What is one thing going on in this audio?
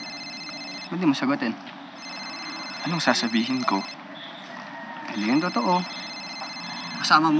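A young man answers with animation, close by.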